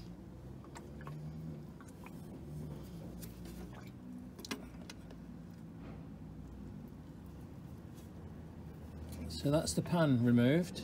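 A metal pan scrapes and clinks against metal parts.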